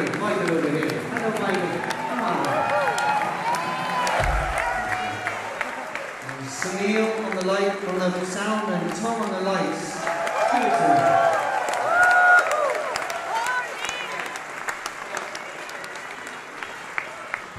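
A live band plays loudly with electric guitars.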